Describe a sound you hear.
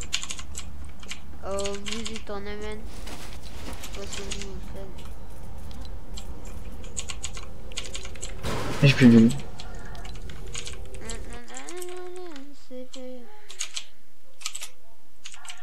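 Keys on a mechanical keyboard click and clatter rapidly.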